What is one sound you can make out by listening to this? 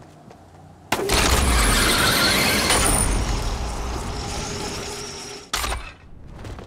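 A cable hums and whooshes loudly as a rider zips along it.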